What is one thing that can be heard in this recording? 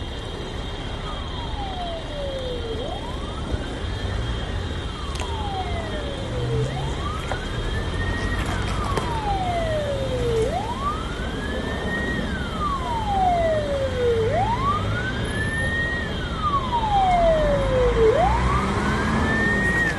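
A siren wails in rising and falling sweeps, growing louder.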